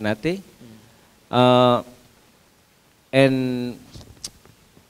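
A young man speaks into a microphone in short, drawn-out phrases, heard through loudspeakers.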